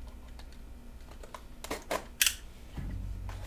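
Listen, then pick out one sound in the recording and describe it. A cardboard box is cut open with a box cutter.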